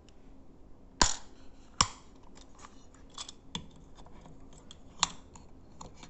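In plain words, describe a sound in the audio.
A small metal padlock clicks and clinks as it is handled.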